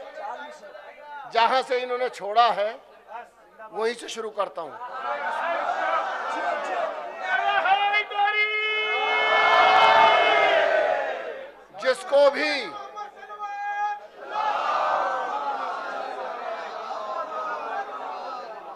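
A middle-aged man speaks with animation and recites into a microphone over a loudspeaker.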